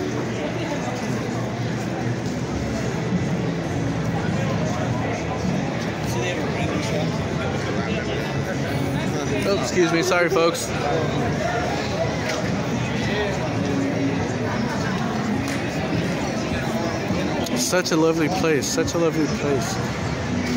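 A crowd of people chatters and walks about outdoors.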